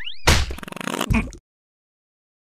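A soft rubbery thud sounds.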